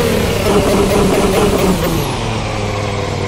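A racing car engine roars and winds down as the car slows.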